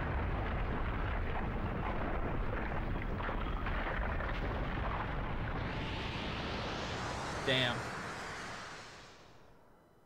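Whooshing effects from a cartoon play loudly and fade away.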